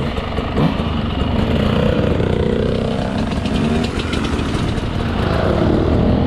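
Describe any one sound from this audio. Other dirt bike engines buzz as riders pass nearby.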